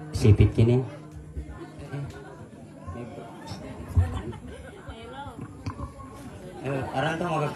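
A woman plays a small string instrument.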